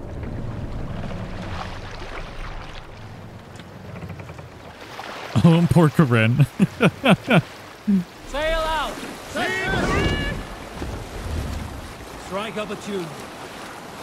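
Water laps and rushes against a wooden boat's hull.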